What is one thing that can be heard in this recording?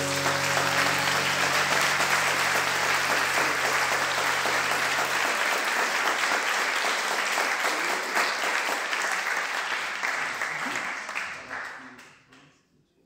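A large audience applauds in a hall, and the applause dies away.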